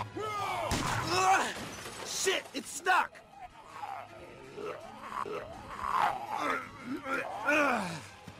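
A man shouts in alarm.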